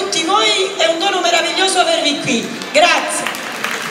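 A singer sings loudly through a sound system in a large echoing hall.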